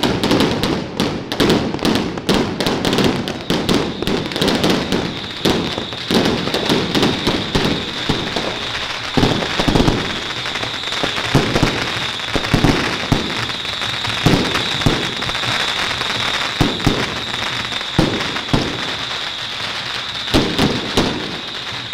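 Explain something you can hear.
Firecrackers crackle and bang in rapid bursts nearby, outdoors.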